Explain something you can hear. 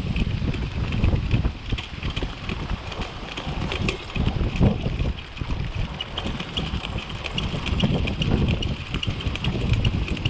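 Wheels roll and rattle over a dirt trail.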